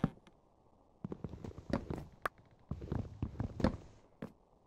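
An axe chops at wood with quick, hollow knocks.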